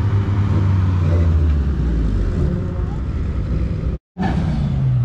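A sports coupe drives past outdoors.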